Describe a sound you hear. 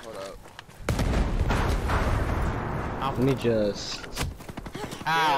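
Gunshots crack nearby.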